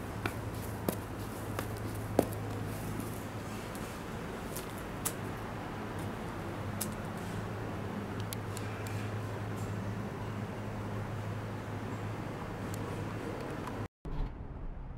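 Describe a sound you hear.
A hydraulic pump hums steadily nearby.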